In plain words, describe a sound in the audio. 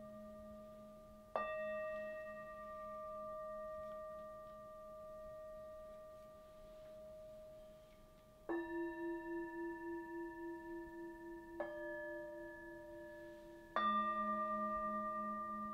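Singing bowls are struck and ring out with long, humming tones that slowly fade.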